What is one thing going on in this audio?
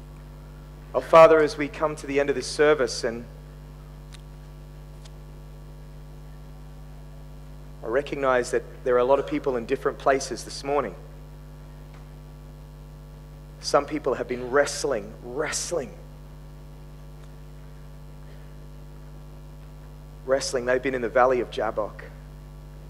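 A man speaks slowly and earnestly into a headset microphone, in bursts with long pauses.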